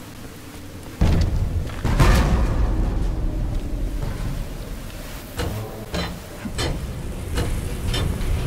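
A loud magical energy effect whooshes and hums.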